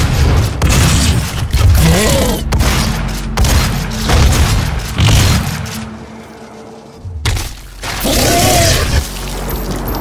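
A large monster roars in a video game.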